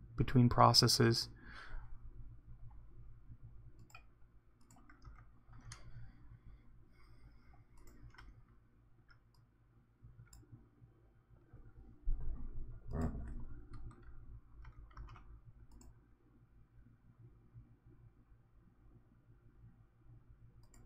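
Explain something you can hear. A man speaks quietly into a nearby microphone.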